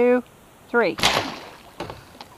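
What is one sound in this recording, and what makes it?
A compound bow releases an arrow with a sharp snap.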